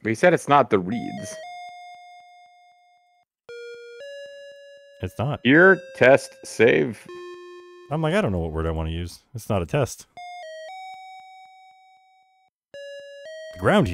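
Simple electronic game music plays in plain beeping tones.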